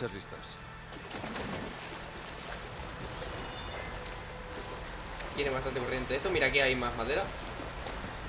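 Water splashes as a figure wades through a pond.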